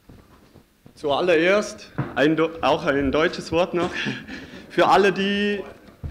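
A young man speaks calmly through a microphone in an echoing hall.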